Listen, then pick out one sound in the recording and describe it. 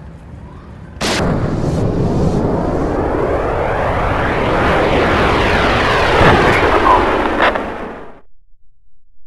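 A bullet whooshes through the air with a long, swelling rush.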